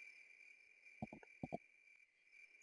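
A horse's hooves clop softly a few times.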